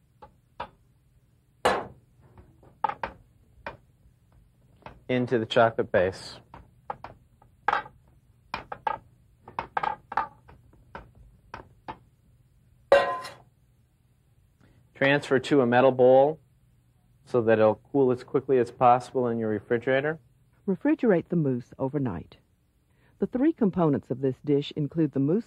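A spatula scrapes around a metal bowl.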